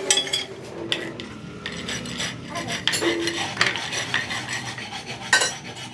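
Sheet metal clinks and scrapes as pieces are handled by hand.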